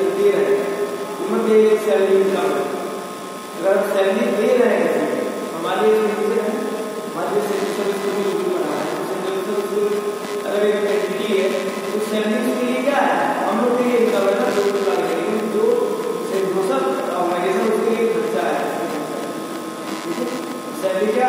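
A young man speaks with animation, close by, in a slightly echoing room.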